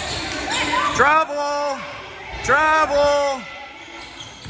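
Spectators call out and cheer loudly.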